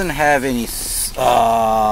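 A button clicks on a car's dashboard.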